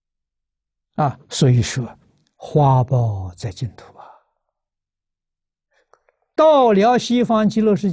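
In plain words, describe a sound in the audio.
An elderly man speaks calmly, close to a microphone, pausing between phrases.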